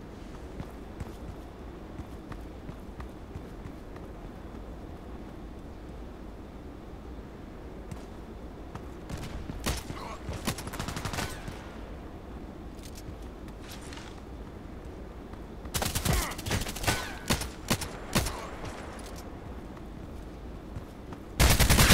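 Footsteps scuff along on hard ground.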